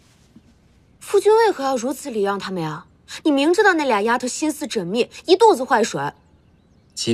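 A young woman speaks close by with pleading emotion.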